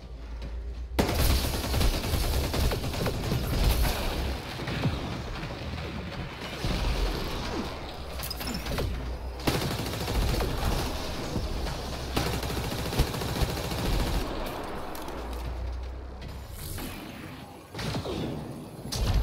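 Gunfire and energy blasts crackle and boom.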